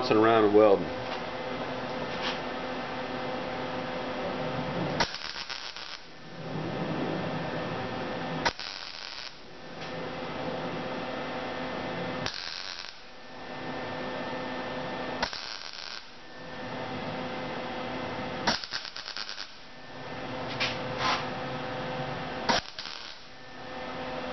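A welding torch crackles and buzzes in steady bursts with short pauses between them.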